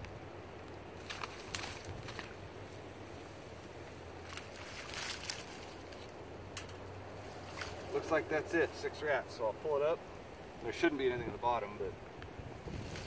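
Water splashes as a man's hands reach into it.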